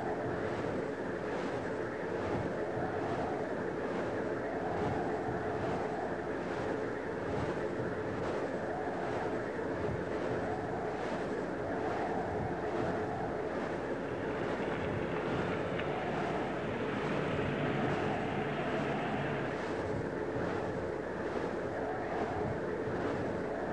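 Strong wind blows outdoors.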